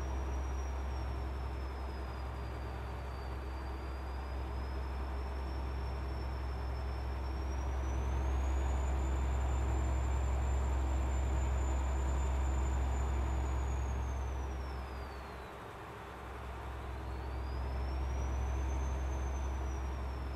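A truck engine's whine rises and falls in pitch.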